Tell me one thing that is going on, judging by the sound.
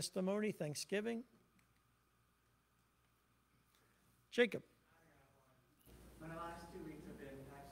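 A man speaks through a microphone in an echoing hall, pausing between phrases.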